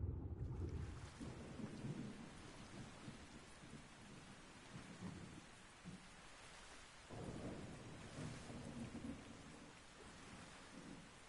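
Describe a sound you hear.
A swimmer paddles through water at the surface.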